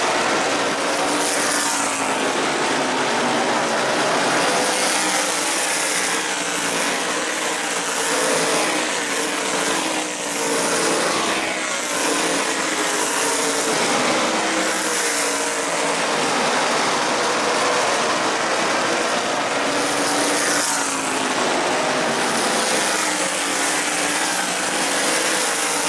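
Race car engines roar loudly as cars speed past, rising and falling.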